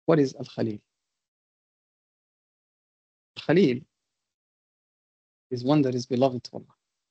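A man speaks calmly with pauses, heard through an online call.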